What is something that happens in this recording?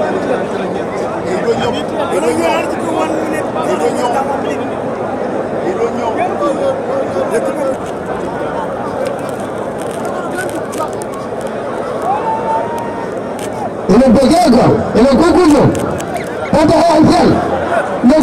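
A large crowd murmurs and chatters outdoors.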